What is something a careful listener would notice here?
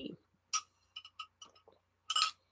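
A woman sips noisily through a straw.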